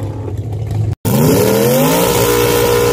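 A car engine revs up, rising in pitch.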